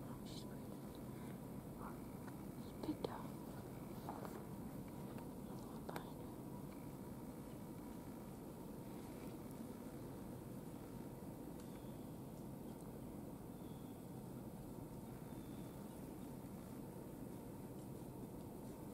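Dry leaves rustle and crackle under a deer's hooves.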